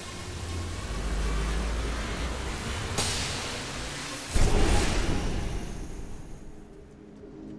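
A magical energy blast bursts with a loud whoosh.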